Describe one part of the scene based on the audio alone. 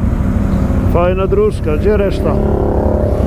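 Another quad bike engine revs nearby as it passes.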